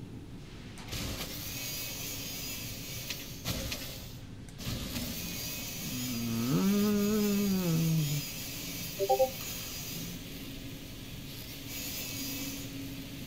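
A cutting beam hums and crackles steadily.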